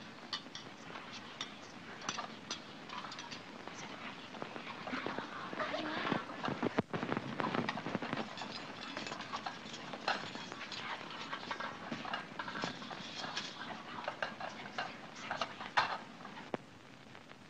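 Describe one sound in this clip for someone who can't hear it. A crowd of men and women chatter and laugh nearby.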